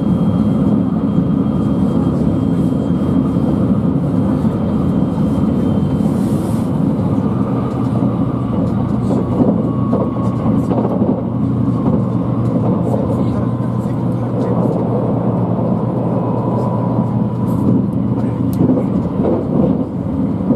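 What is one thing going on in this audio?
Wheels clack over rail joints.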